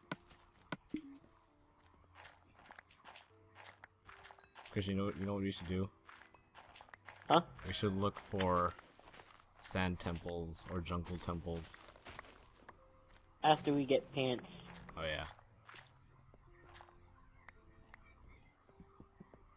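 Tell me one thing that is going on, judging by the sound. A shovel crunches softly into dirt, over and over.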